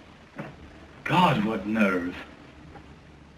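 A man speaks with feeling, close by.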